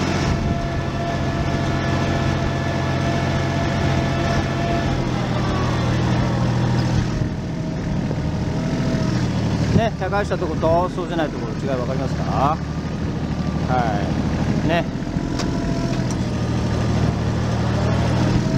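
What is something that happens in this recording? Soil crunches under a tractor's tyres.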